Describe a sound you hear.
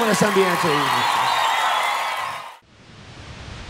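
A large crowd cheers and screams loudly in a big echoing hall.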